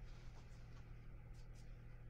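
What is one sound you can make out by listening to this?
A brush swishes softly across wet paper.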